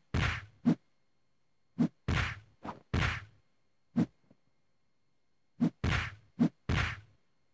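Punches and kicks land with sharp, heavy thuds.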